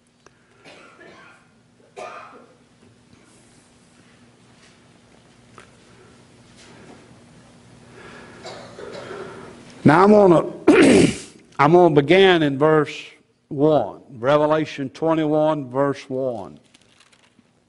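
An elderly man speaks through a microphone, at first quietly and then loudly and with emphasis.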